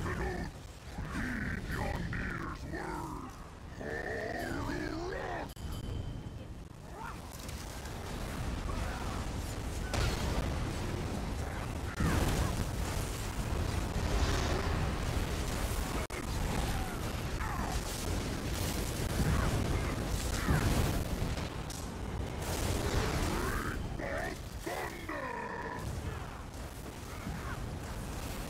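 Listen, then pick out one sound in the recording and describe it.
Magic spells crackle and boom in a busy fight, with bursts of impacts.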